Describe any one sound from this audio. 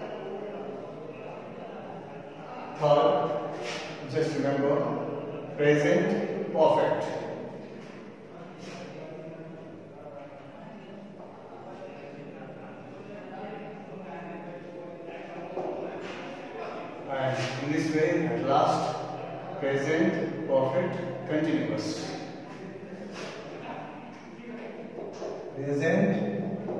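A man speaks calmly in a room with some echo.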